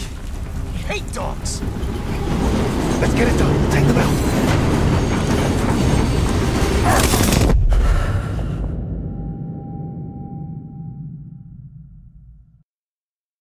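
A deep, loud rumble of battle fills the air and slowly fades away.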